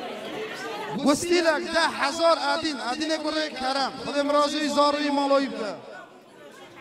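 A man speaks loudly into a microphone through a loudspeaker, with animation.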